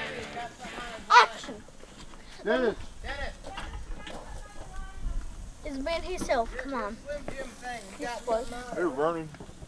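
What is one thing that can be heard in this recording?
A young boy laughs and talks excitedly close by.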